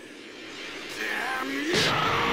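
A young man yells in anger and strain.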